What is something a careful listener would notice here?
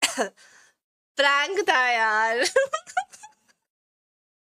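A young woman laughs loudly and squeals close to a microphone.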